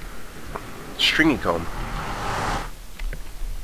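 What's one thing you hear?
A deep magical whoosh swells and fades.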